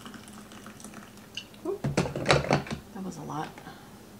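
A kettle is set down with a knock.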